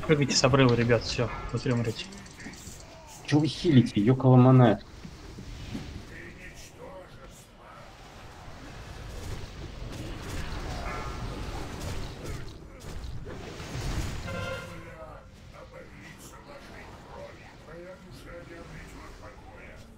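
Spell effects whoosh and crackle during a fantasy battle.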